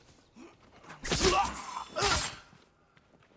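A blade stabs into a body with a heavy thud.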